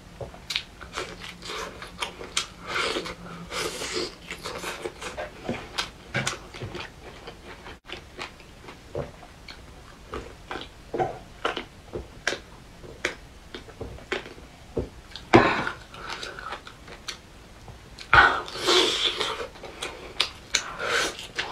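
A young woman tears meat off a bone with her teeth.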